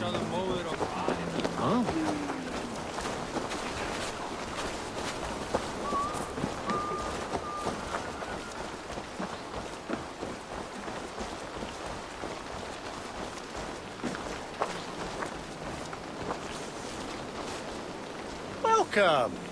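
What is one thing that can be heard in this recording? Footsteps crunch on dirt and gravel at a steady walking pace.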